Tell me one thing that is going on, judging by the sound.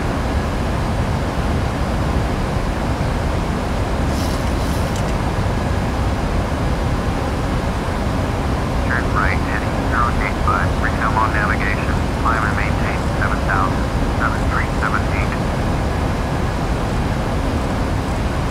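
Jet engines roar steadily with a low rumble.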